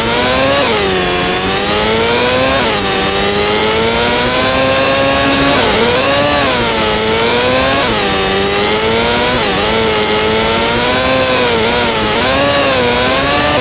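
A racing car engine whines loudly, its pitch rising and dropping as it shifts gears and brakes.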